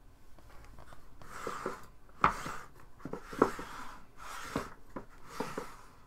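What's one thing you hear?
A woollen sleeve rustles and brushes close by.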